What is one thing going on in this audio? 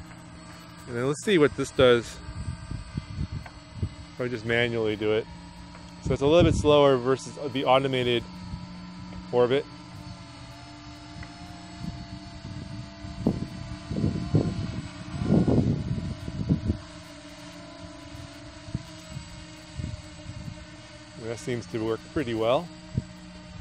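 An adult man talks calmly outdoors, in short bursts.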